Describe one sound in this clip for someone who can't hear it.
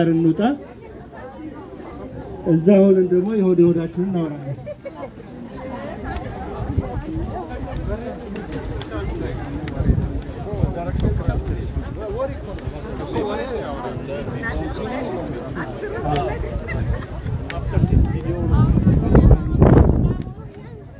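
A crowd of men and women chants and talks outdoors.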